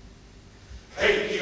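A male choir starts singing together.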